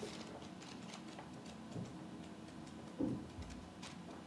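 Paper pages rustle and flap as a notebook is flipped.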